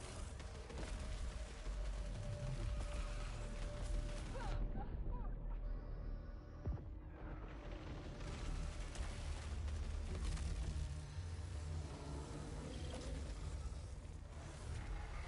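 Energy blasts and explosions boom with deep rumbling.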